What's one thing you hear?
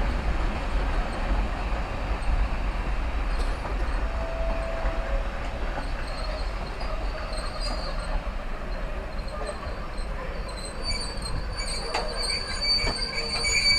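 A passenger train rumbles past at low speed, its wheels clattering on the rails.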